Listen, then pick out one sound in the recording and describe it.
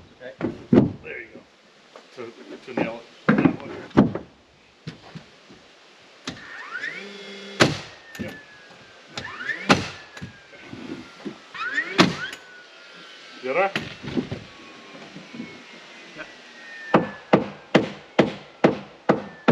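A nail gun fires sharp bangs into wood, again and again.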